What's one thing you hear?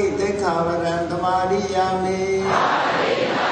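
An elderly man chants in a drawn-out voice into a microphone.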